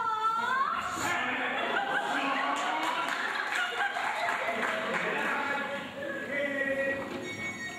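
An accordion plays.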